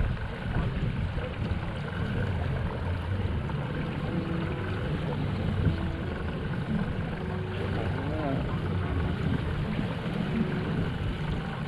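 A man talks casually close by.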